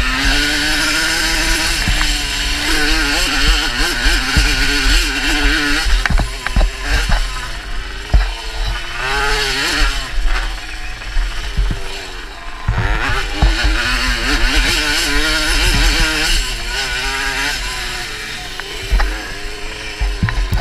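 A dirt bike engine revs hard, rising and falling as the rider shifts gears.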